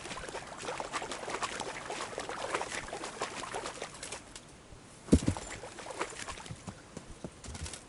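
Leaves and branches rustle and swish as a horse pushes through thick bushes.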